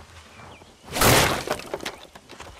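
Wooden boards smash and splinter loudly.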